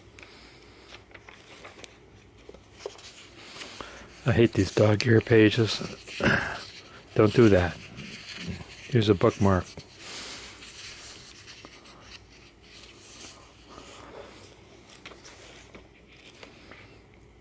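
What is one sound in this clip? Paper pages rustle and crinkle as they are turned and folded.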